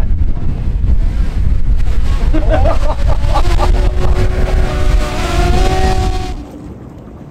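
Wind blusters loudly into the microphone outdoors.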